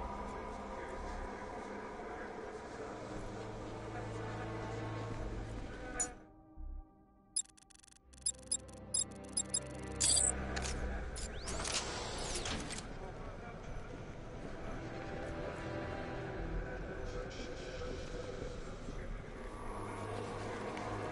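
Low, brooding music plays steadily.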